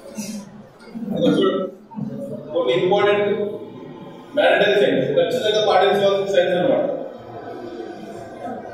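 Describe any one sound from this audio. A young man speaks with animation through a microphone and loudspeakers.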